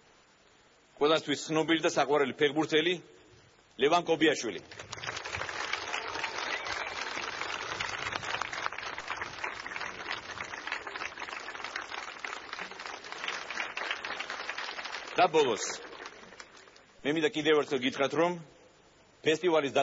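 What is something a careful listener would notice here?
A man speaks calmly into a microphone outdoors.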